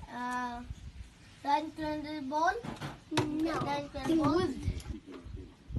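A young child speaks loudly in a high voice close by.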